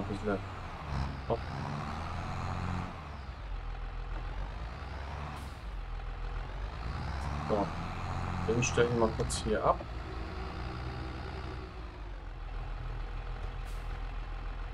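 A tractor engine rumbles steadily as the tractor drives.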